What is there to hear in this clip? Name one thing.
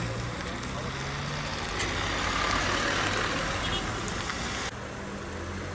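Traffic hisses past on a wet road.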